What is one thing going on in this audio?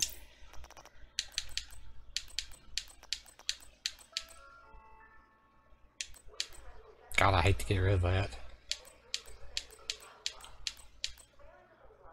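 Short sharp interface clicks tick in quick runs.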